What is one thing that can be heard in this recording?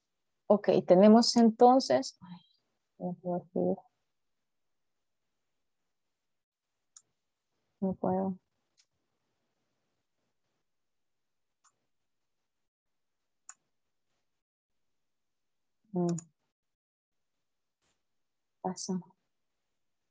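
A woman speaks in short bursts over an online call.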